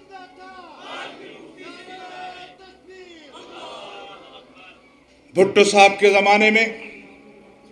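An elderly man speaks forcefully into a microphone over a loudspeaker.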